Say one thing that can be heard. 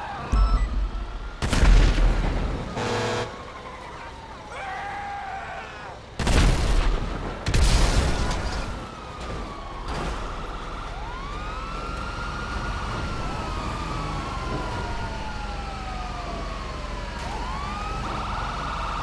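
A tank engine rumbles as the tank drives along.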